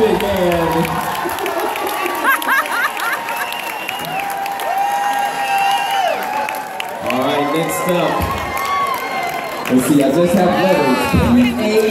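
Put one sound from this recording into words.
A crowd of adult men and women cheer and chatter in a large room.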